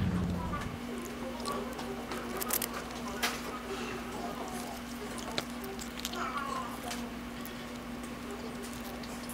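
A paper wrapper crinkles.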